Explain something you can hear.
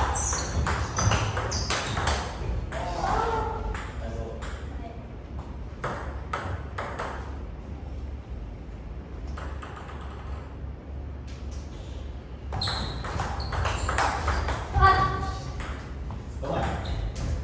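A ping-pong ball clicks back and forth on paddles and a table.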